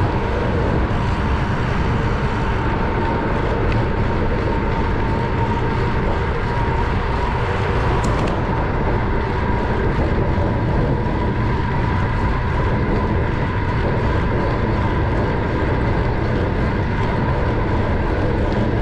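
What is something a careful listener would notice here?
A car's tyres hum steadily on a paved road.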